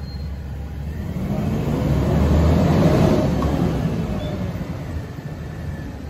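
A garbage truck drives forward with a swelling engine roar.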